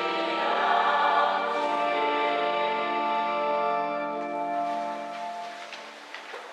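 A man chants in long, steady notes through a microphone.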